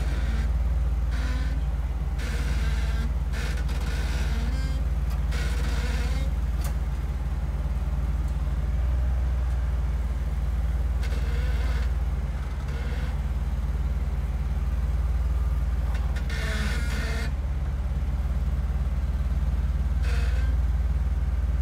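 Tyres scrape and grind against rock.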